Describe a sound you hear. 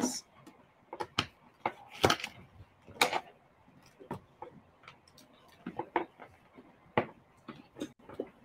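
Objects knock and rustle close by.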